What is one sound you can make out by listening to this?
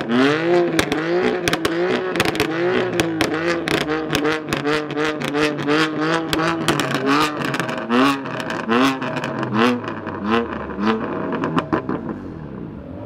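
Exhaust pops and crackles sharply between revs.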